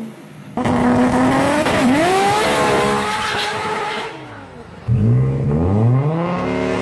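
A car engine revs hard with a loud exhaust roar, rising and falling in pitch.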